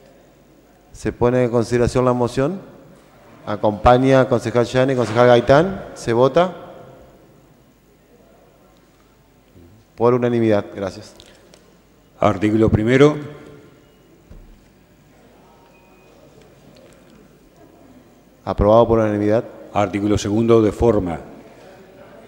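A man speaks firmly through a microphone in a large echoing hall, in short bursts.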